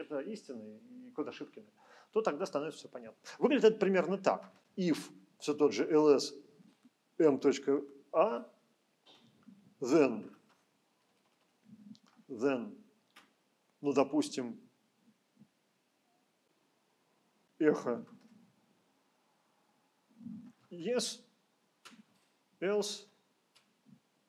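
A middle-aged man speaks calmly and in short phrases, close by.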